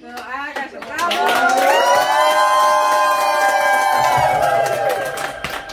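Men and women cheer and whoop loudly.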